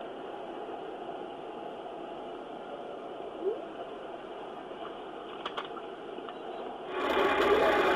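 Tyre and road noise hums from inside a car moving on a highway.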